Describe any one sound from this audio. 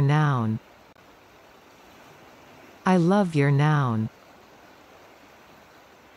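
A swollen river rushes steadily over its banks.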